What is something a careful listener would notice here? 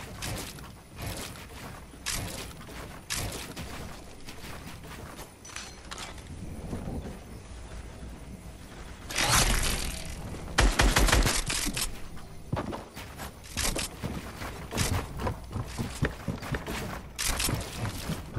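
Building pieces snap into place in quick, repeated bursts.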